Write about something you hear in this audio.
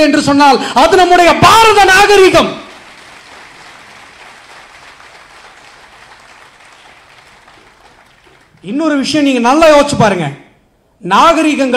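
A man speaks forcefully into a microphone through loudspeakers, in bursts with pauses.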